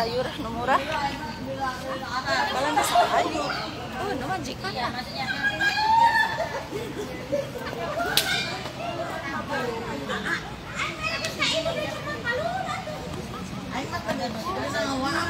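Young women talk and laugh close by, outdoors.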